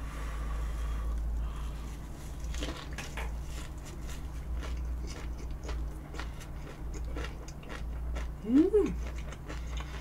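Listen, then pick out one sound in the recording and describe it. A young woman chews and crunches food close to a microphone.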